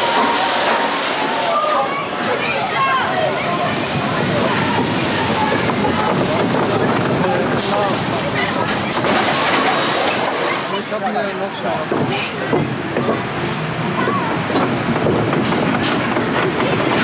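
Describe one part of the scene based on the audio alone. Adult passengers chatter nearby.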